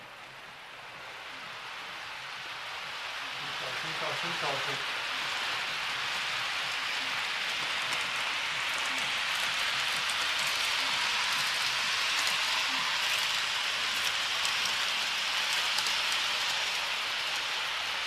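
A model train rolls along its track with a steady whirring hum.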